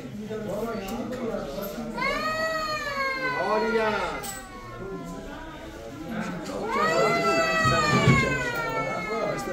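A young man sings loudly and with feeling close by.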